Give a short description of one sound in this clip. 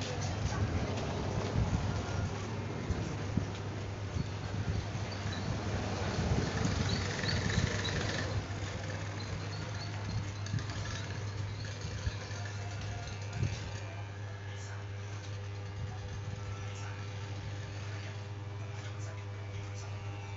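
Hair clippers crunch through short hair.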